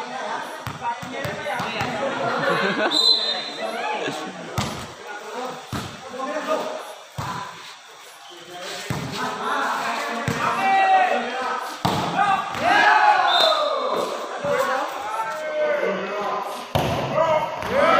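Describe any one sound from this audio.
A crowd of men shouts and cheers outdoors.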